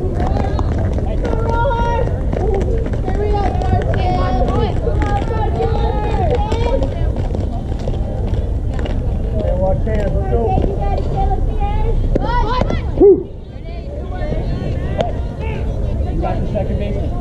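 Young girls shout and cheer across an open field.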